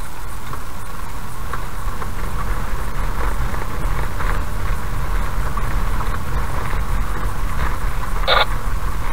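A car engine hums at low speed.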